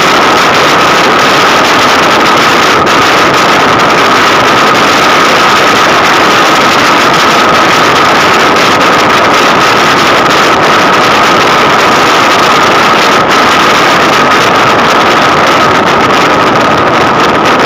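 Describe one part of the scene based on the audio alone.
Tyres roar steadily on a road at speed.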